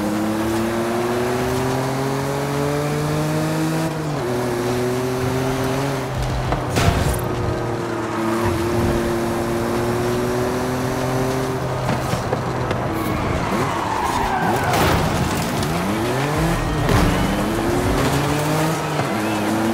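A sports car engine roars as the car accelerates and shifts gears.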